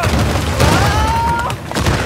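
A fire roars and crackles nearby.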